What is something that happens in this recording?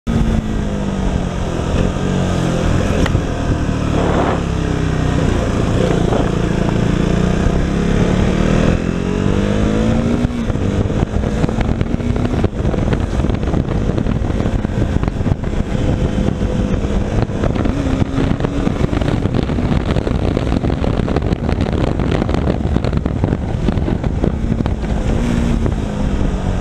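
A motorcycle engine hums and revs, rising and falling in pitch.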